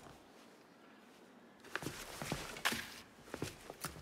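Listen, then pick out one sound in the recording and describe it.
Paper rustles as a letter slides under a door.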